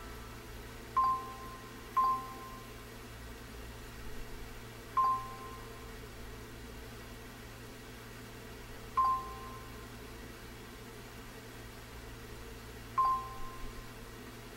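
Short electronic blips sound now and then from a game.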